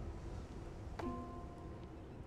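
A stone piece clicks into a stone socket.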